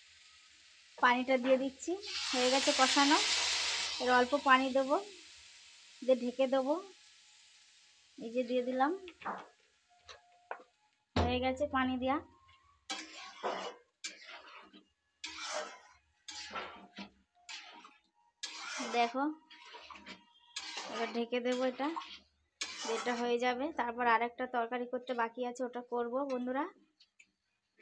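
A woman talks calmly and closely.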